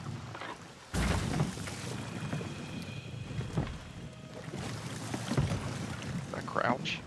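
Oars splash through water.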